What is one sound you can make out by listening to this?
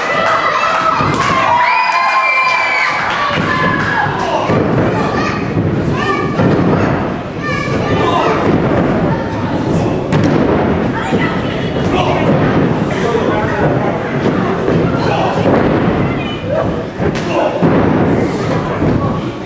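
Wrestlers slam onto the ring mat with heavy thuds.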